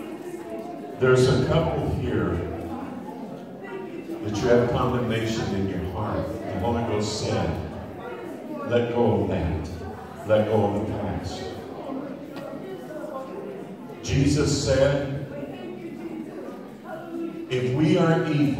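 A man preaches loudly into a microphone over loudspeakers in an echoing hall.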